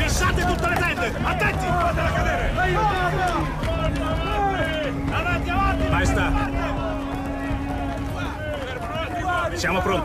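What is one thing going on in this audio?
A crowd of men shouts and cries out in alarm.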